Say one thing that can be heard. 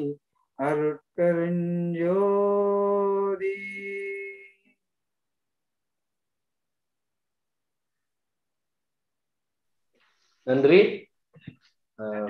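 An older man chants in long, held tones, heard through an online call.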